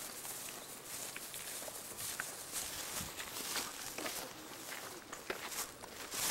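Several people's footsteps scuff on asphalt.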